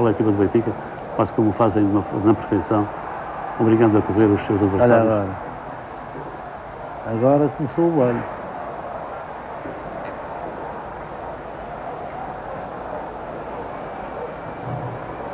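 A large crowd murmurs and roars in a stadium.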